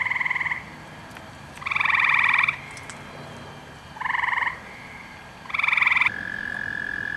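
A frog calls nearby in loud, repeated trilling bursts.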